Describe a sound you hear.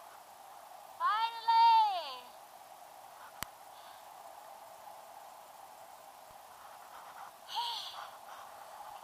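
A young woman whoops loudly with excitement, close by.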